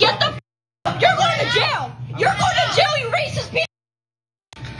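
A man shouts angrily at close range.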